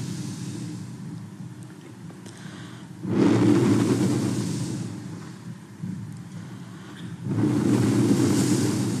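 An elderly woman speaks slowly and calmly into a microphone.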